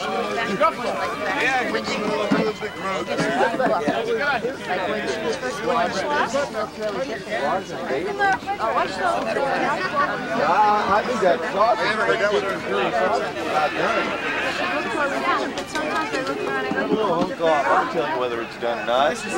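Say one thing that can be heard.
A crowd of men and women chatter at once, close by, outdoors.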